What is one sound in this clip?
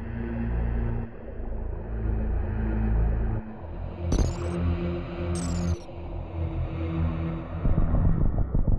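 Low electronic video game music plays.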